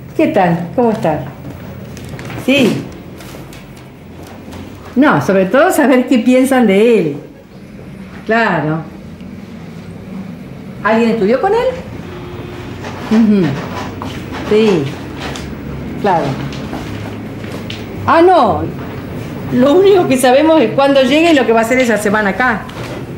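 A woman speaks quietly on a phone nearby.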